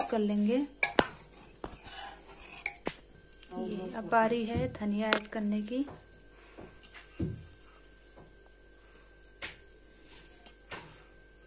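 A metal ladle clinks against the side of a metal pot.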